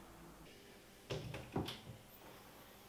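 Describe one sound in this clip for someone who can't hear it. A cupboard door opens with a soft knock.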